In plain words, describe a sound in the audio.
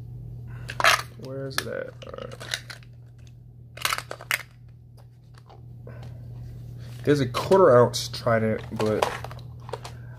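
Plastic coin capsules click and clack together in hands.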